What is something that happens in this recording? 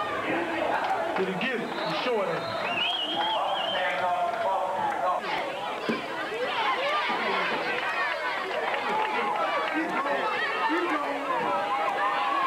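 A large crowd shouts and cheers outdoors.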